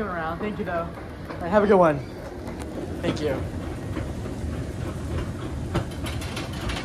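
An escalator hums and rattles steadily.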